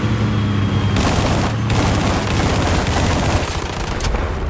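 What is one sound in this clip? Gunfire bursts in rapid rounds.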